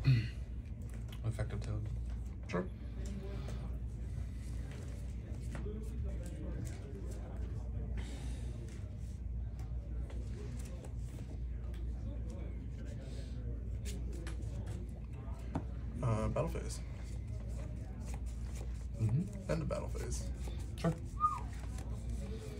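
Playing cards shuffle and riffle softly in hands.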